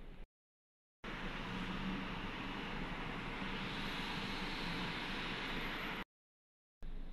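Passing traffic rushes by loudly outdoors.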